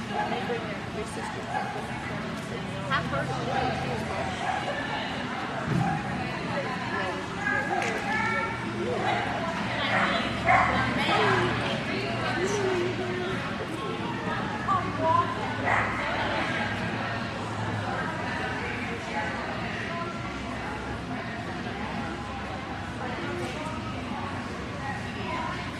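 A woman calls out to a dog with animation in a large echoing hall.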